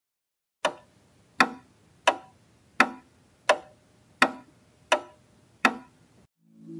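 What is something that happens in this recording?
A countdown beeps once each second.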